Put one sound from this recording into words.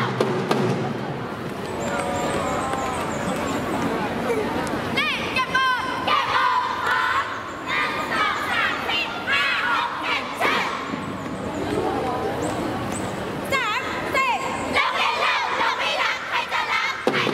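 A large crowd of young people cheers and shouts loudly outdoors.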